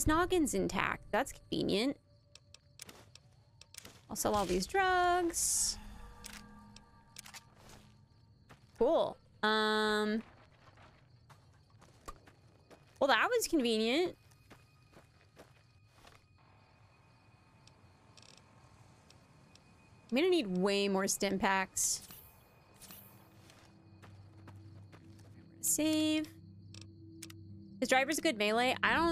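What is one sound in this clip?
A young woman talks with animation into a close microphone, in bursts.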